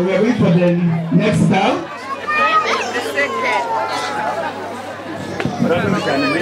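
A crowd of men and women chatters and calls out outdoors.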